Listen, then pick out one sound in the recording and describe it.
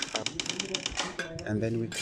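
A trowel taps on concrete blocks.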